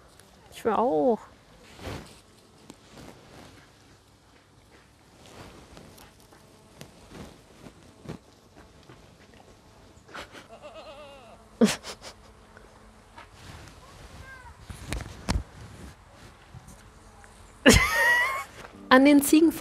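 A goat bleats loudly nearby.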